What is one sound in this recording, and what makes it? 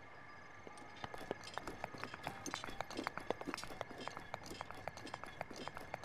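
Quick light taps of hands and feet gripping stone as someone climbs.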